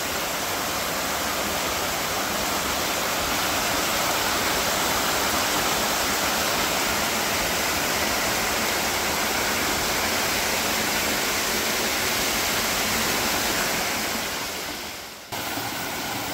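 A mountain stream rushes and splashes over rocks.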